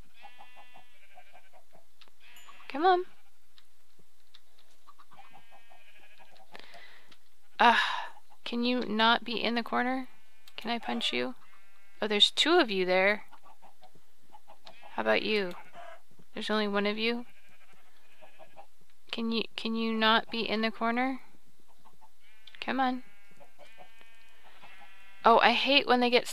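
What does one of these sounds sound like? Chickens cluck softly now and then.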